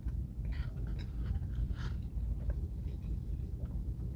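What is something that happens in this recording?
A man chews food with his mouth closed, close by.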